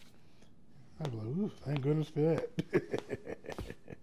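A man speaks firmly in a deep voice.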